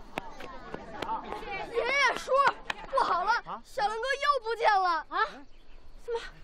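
A boy shouts excitedly, calling out.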